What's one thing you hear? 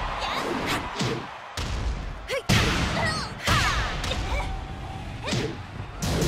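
Female fighters cry out with short shouts as they strike.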